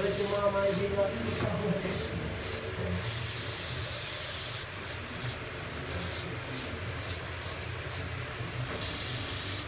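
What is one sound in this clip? A spray can hisses in short and long bursts.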